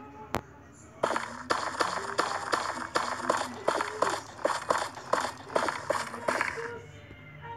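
Footsteps thud quickly on the ground.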